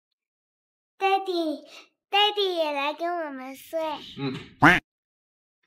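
A young boy speaks cheerfully.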